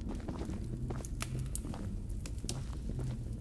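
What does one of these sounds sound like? A torch fire crackles close by.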